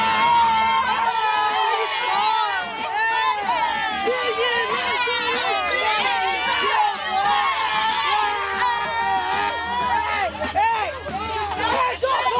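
Teenagers shout and cheer excitedly inside a moving bus.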